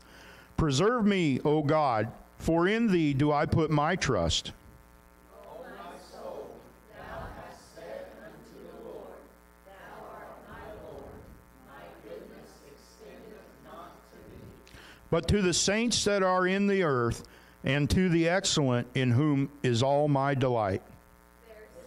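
A man speaks through a microphone and loudspeakers in an echoing hall, reading out with emphasis.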